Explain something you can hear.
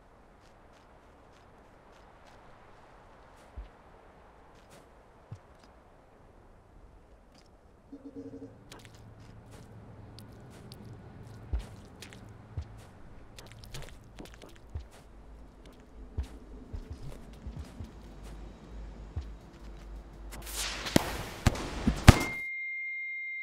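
Light footsteps patter quickly as a small figure runs.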